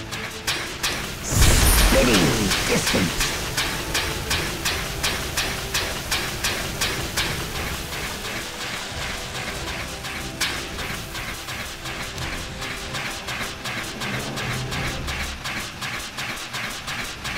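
Rapid game weapon blows strike over and over.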